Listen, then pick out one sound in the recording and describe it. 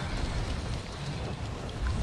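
A large winged monster flaps its wings with heavy whooshes.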